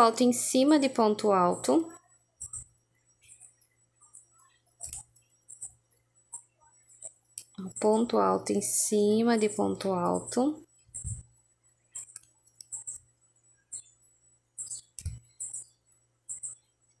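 A crochet hook clicks softly as yarn is pulled through stitches.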